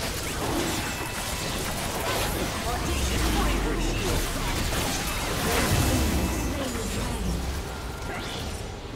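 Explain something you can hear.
Magic blasts and sword hits crackle and thump in a fast fight.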